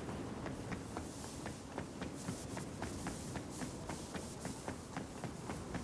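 Dry grass rustles against legs.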